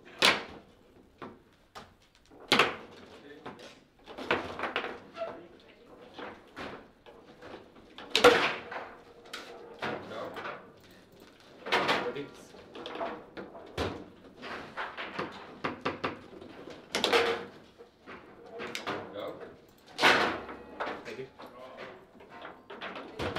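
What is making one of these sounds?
Foosball rods rattle and clack as players spin and slide them.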